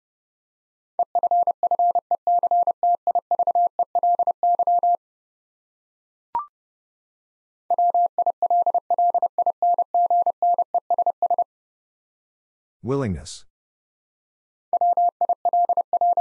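A telegraph key taps out steady, rapid Morse code beeps.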